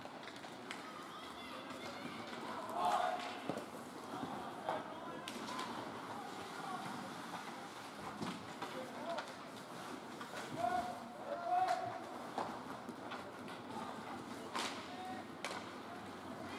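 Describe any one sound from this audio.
Ice hockey skates scrape and carve across the ice in a large echoing rink.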